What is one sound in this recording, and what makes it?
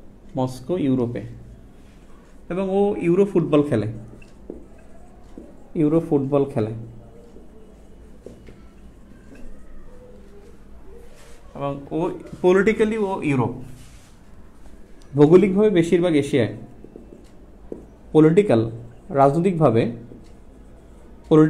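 A man speaks calmly and clearly in short bursts, close by.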